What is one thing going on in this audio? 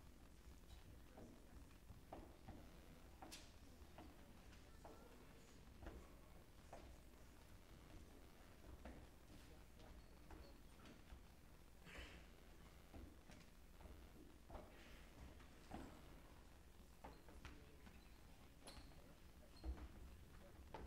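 Footsteps shuffle and knock across a stage in a large hall.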